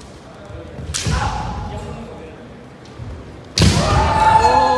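Bamboo swords clack sharply against armour.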